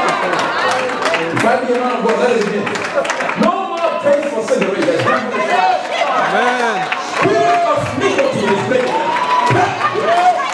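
A crowd claps hands in rhythm.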